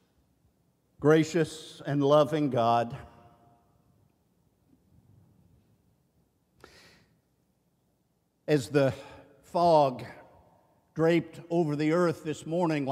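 An elderly man preaches with feeling through a microphone in a large echoing hall, pausing between phrases.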